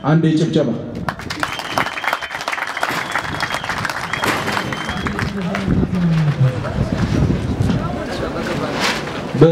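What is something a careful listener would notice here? A crowd claps and cheers outdoors.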